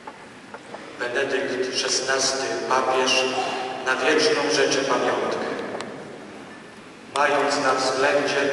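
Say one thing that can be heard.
A man sings through a microphone in a large echoing hall.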